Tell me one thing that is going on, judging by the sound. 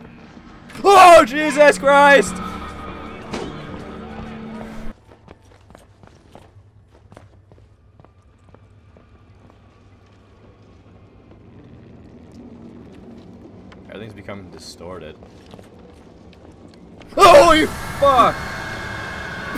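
A young man screams loudly into a microphone.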